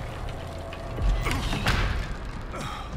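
A door slams shut nearby.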